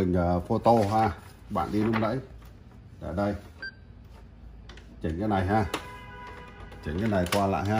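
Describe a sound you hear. Sheets of paper rustle as they are handled.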